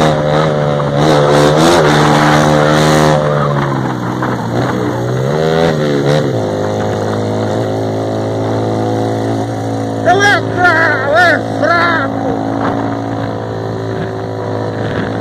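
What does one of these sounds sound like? A motorcycle engine hums steadily up close, rising and falling in pitch as it speeds up and shifts.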